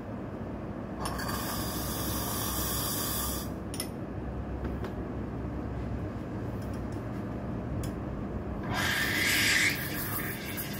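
A lever espresso machine hisses in short bursts.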